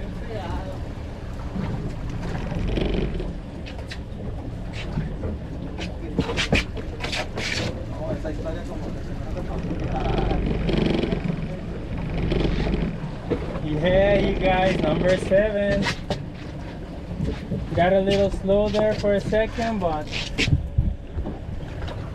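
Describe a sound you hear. Wind rumbles over open water.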